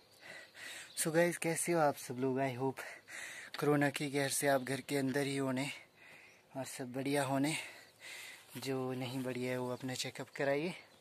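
A young man talks calmly and close up to the microphone.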